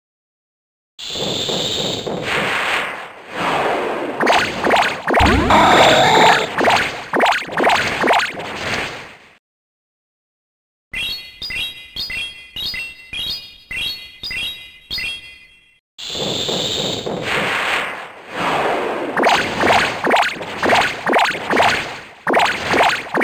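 Game battle effects whoosh and crash.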